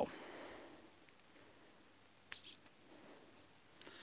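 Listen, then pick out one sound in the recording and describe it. A plug clicks into a socket.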